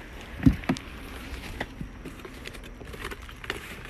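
Plastic sheeting crinkles and rustles.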